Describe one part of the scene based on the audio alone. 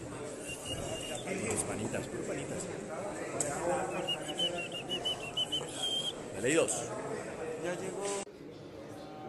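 A man talks to a phone held close, speaking with animation.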